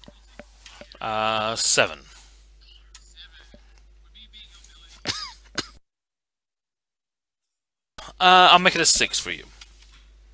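A man laughs loudly over an online call.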